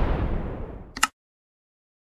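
A mouse clicks once.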